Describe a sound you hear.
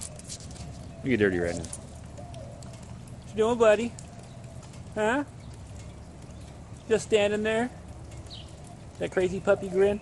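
A man speaks in short bursts close by, outdoors.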